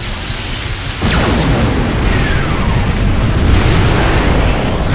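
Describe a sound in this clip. A powerful energy beam roars steadily.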